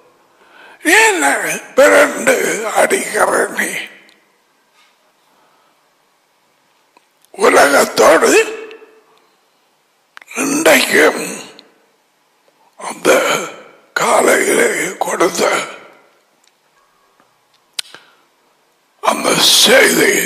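An elderly man speaks with animation into a close headset microphone, in short bursts with pauses.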